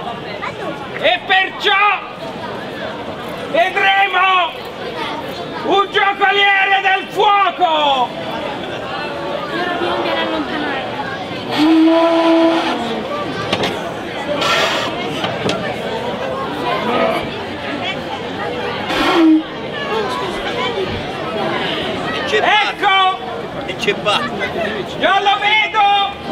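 A man speaks loudly and dramatically, declaiming.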